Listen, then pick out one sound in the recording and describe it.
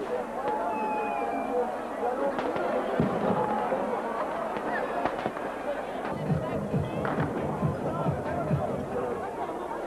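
Fireworks whistle and pop overhead.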